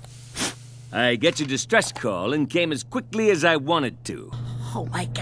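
A man speaks with a boastful, booming voice.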